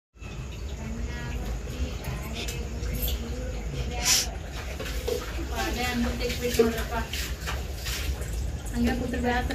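Metal pots clatter and clink.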